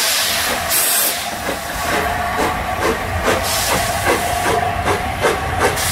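A steam locomotive chuffs rhythmically as it pulls away.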